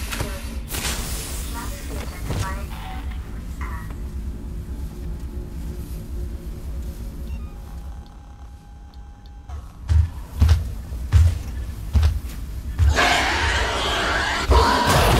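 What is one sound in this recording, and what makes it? A flare fizzes and crackles as it burns.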